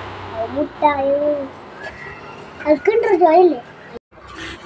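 A woman speaks nearby with animation.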